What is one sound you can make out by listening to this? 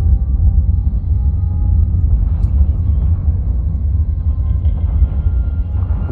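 A deep, rumbling drone of spaceship combat rolls on in a video game.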